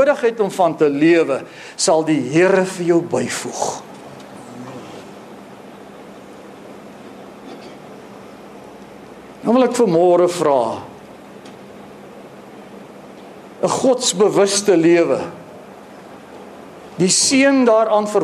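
A middle-aged man speaks with animation through a microphone, with long pauses, in a room with some echo.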